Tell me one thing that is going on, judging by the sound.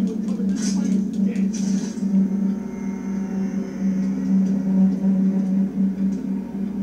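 Video game sounds and music play from a television loudspeaker.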